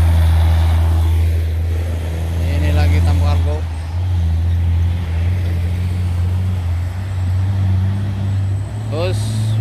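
A second heavy truck's engine drones steadily as the truck approaches.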